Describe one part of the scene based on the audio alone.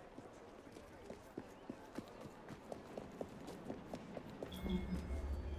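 Quick footsteps run across hard stone.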